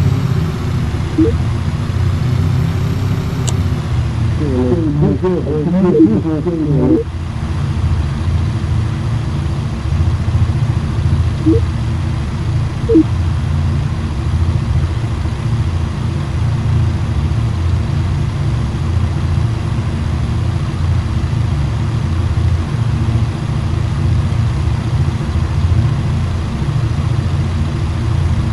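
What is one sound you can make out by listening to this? Propeller engines drone steadily with a low rumble.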